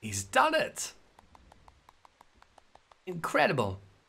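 A woman claps her hands in quick succession.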